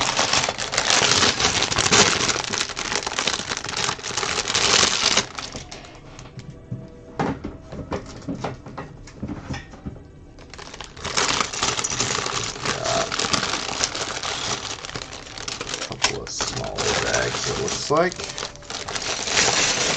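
Plastic pieces rattle inside a bag.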